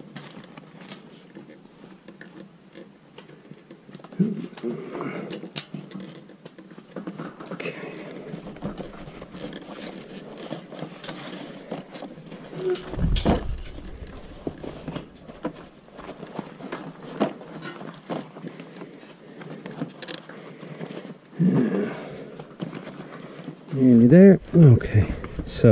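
A rubber tyre rubs and squeaks against a metal wheel rim.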